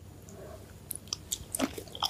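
A woman bites into a crisp piece of food.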